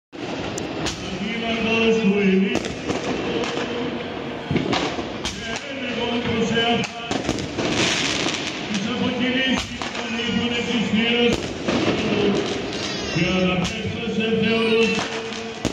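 Fireworks bang and crackle in the open air.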